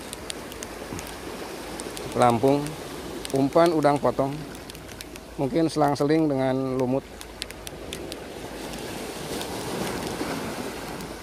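Waves wash and splash against rocks.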